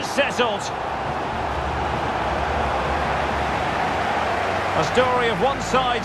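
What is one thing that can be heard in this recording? A large crowd roars and cheers steadily in a big stadium.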